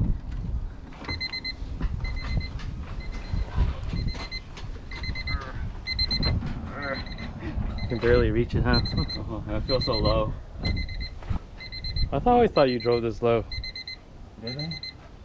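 A car's door-open chime beeps repeatedly and steadily.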